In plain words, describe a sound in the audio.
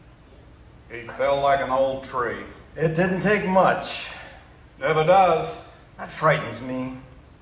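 A man speaks with animation in a large room.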